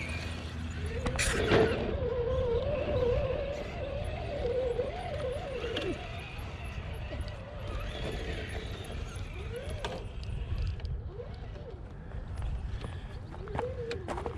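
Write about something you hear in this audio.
Small electric motors whine as toy trucks crawl over rocks.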